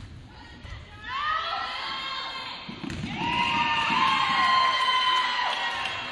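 Spectators cheer and yell in an echoing gym.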